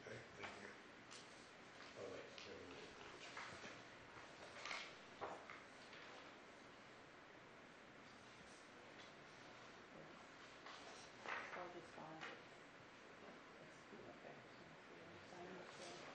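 A man speaks quietly at a distance in an echoing room.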